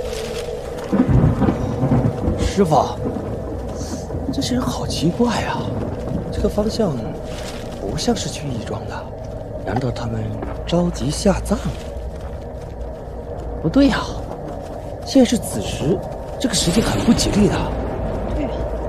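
A young man speaks in a puzzled voice, close by.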